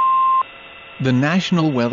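A computer voice starts speaking through a small radio loudspeaker.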